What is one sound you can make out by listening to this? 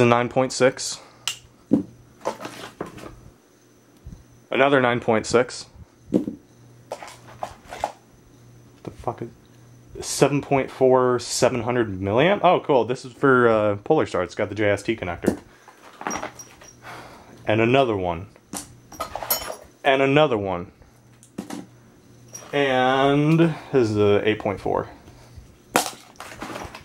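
Hard plastic parts knock and click as hands handle them.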